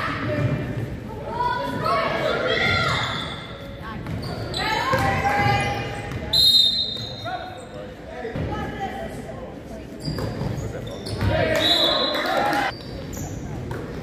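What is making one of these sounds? Girls shout and call out in a large echoing gym.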